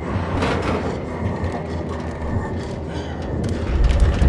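A heavy limp body thumps down onto a metal table.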